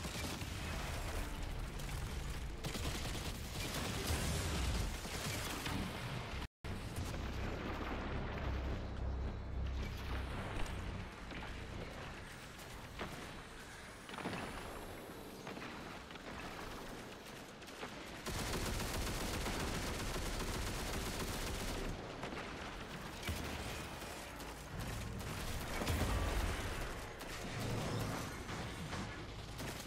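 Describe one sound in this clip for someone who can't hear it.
Guns fire rapidly in a game.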